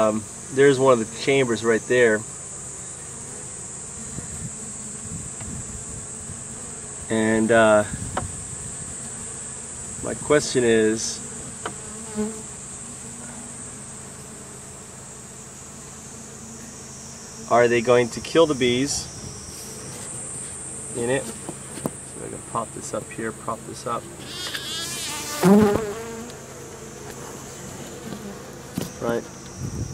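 Honeybees hum and buzz in a crowded hive.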